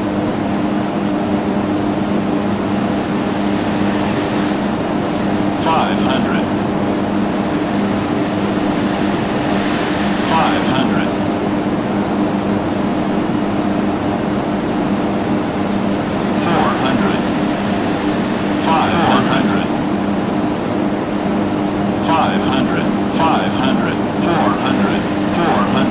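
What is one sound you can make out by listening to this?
A small plane's engine drones steadily.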